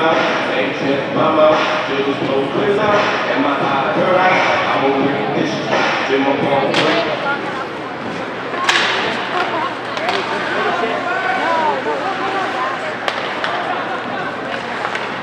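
Spectators chatter close by in a large echoing hall.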